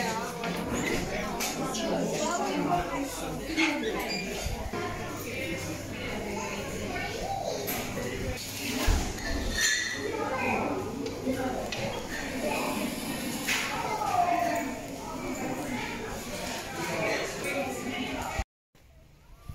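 A crowd of men and women chatters in a busy, echoing room.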